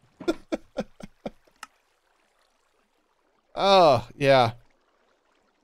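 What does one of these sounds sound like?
A middle-aged man speaks with animation, close to a microphone.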